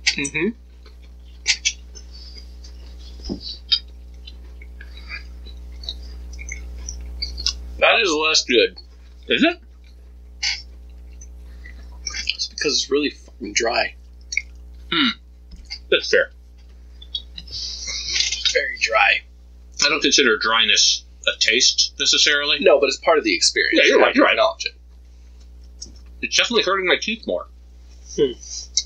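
A bearded man talks close to a microphone.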